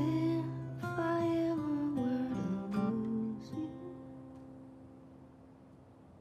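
An acoustic guitar is strummed gently.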